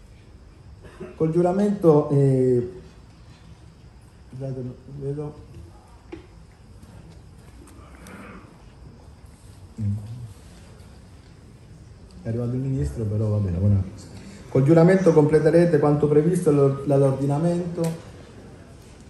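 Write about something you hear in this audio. A man speaks calmly into a microphone through a loudspeaker, pausing between phrases.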